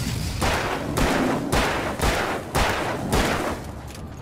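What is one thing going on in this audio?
A pistol fires several shots in quick succession.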